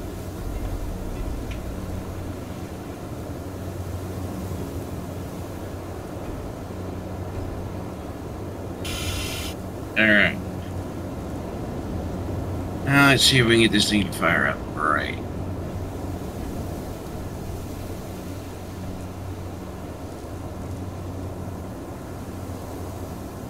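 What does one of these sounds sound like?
Steam hisses steadily from a vent.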